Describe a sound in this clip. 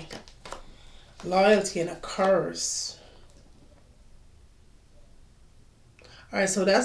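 Cards shuffle and flick in a woman's hands.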